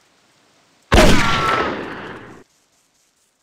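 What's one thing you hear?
A pistol fires a loud shot that echoes away.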